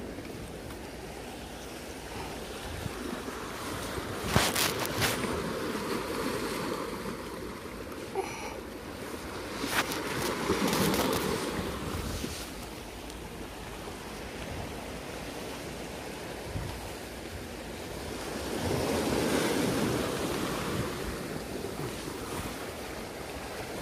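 Waves wash and splash against rocks.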